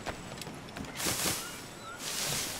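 Palm leaves rustle loudly.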